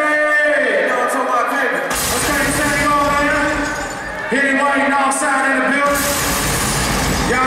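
A young man raps loudly into a microphone over a loudspeaker.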